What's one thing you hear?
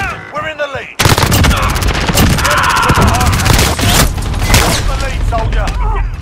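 An automatic rifle fires.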